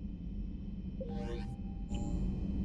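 A soft electronic chime sounds as a menu closes.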